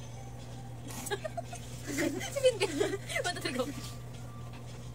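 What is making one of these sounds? Young girls laugh loudly close by.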